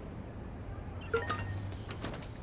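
An electronic device chirps with short beeps.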